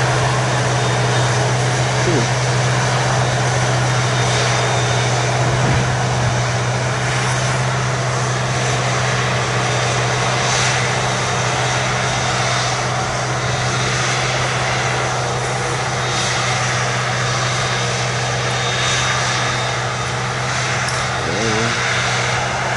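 Chopped crop blows into a trailer with a steady rushing hiss.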